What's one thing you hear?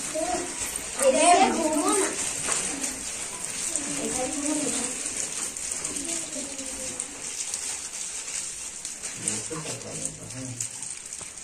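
Children's voices call out and chatter together.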